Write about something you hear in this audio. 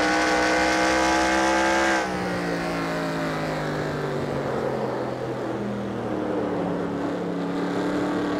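A race car engine roars loudly at high speed, then drops lower in pitch as it slows.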